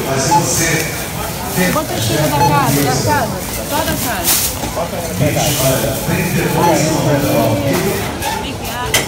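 Plastic bags rustle and crinkle close by.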